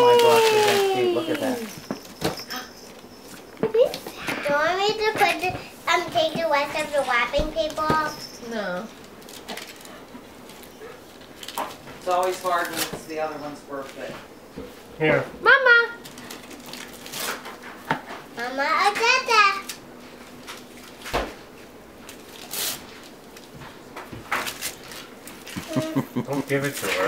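Toys rustle and clatter in a box.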